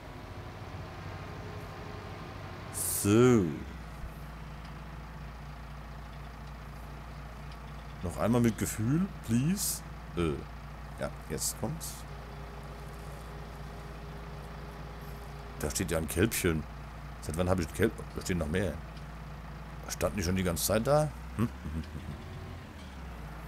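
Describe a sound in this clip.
A tractor engine hums steadily from inside the cab.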